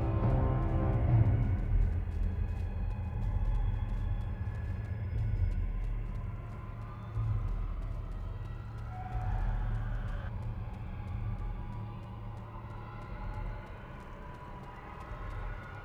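Low, dark music drones steadily.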